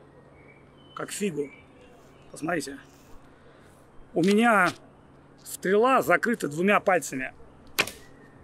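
A middle-aged man speaks calmly and close by, in short phrases.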